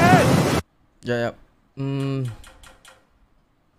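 A young man speaks briefly and casually, close to a microphone.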